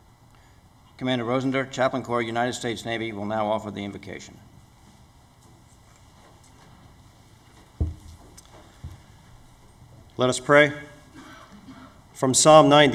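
A man speaks calmly into a microphone, heard over loudspeakers in a large hall.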